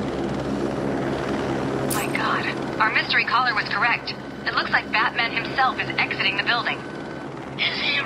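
A helicopter's rotor thumps as the helicopter draws closer.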